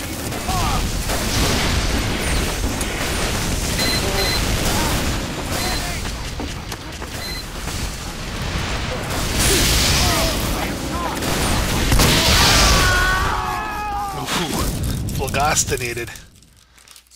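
Gunfire and explosions crackle and boom in a video game.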